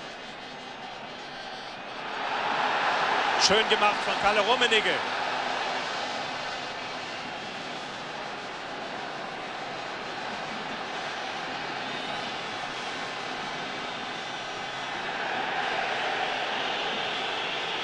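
A large stadium crowd roars, swelling loudly and then settling to a steady murmur.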